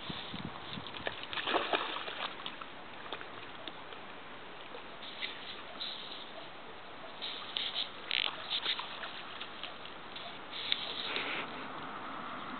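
A dog splashes through shallow water.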